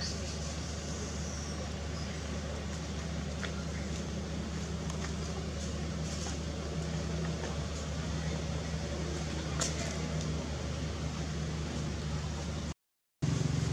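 A monkey chews food with soft smacking sounds.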